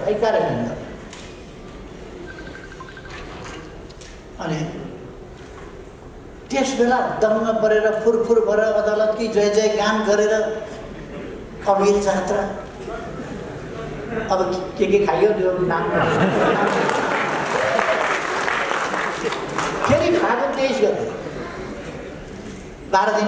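An elderly man speaks forcefully into microphones, with pauses.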